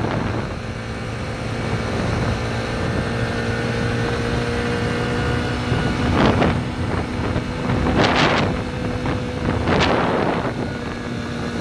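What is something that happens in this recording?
Wind rushes past close by in gusts.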